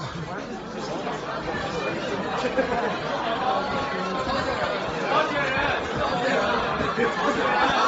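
Music plays loudly through loudspeakers in a large room.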